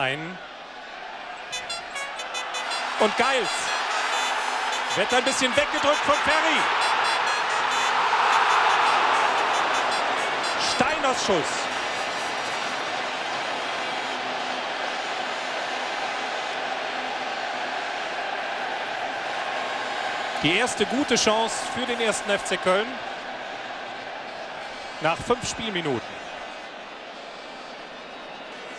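A large stadium crowd roars, swelling loudly as a goal chance builds and then settling into a steady murmur.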